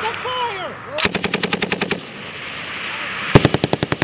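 A machine gun fires in rapid, loud bursts outdoors.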